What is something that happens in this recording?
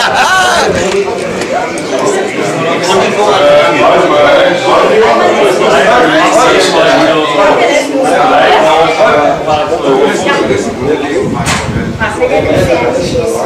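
Several men chat and talk over one another in a room.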